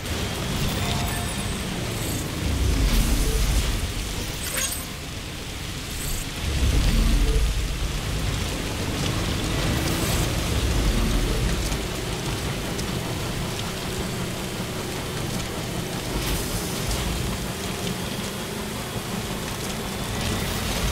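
A small vehicle's engine hums as it drives over rough ground.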